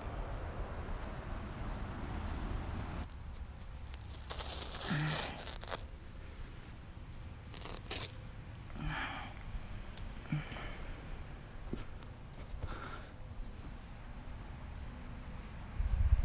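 Plastic sheeting rustles and crinkles as it is handled.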